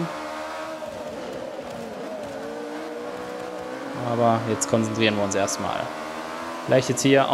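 A racing car engine roars, its pitch rising and dropping as gears change.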